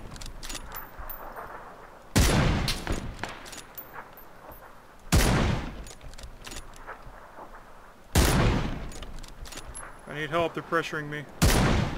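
A rifle bolt clicks as it is worked back and forth.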